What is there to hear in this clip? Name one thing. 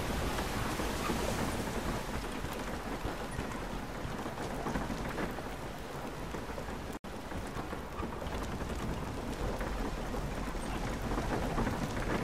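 Footsteps crunch on snow and creak on wooden boards.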